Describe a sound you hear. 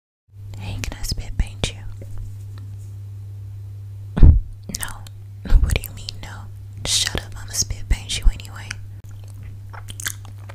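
A young woman whispers softly and closely into a microphone.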